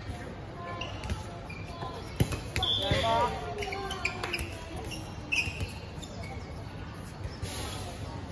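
Sneakers squeak on the court.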